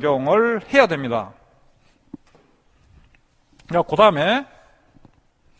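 A middle-aged man lectures calmly into a close microphone.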